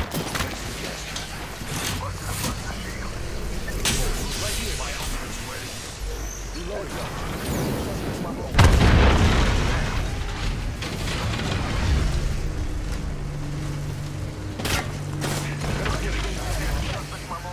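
A shield cell charges with an electric hum.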